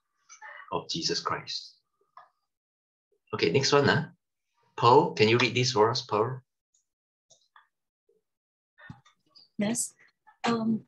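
A middle-aged man speaks calmly through a microphone on an online call.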